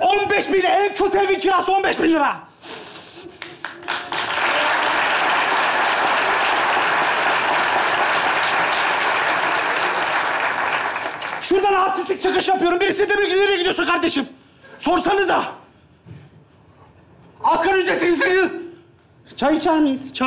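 A young man shouts with animation on a stage.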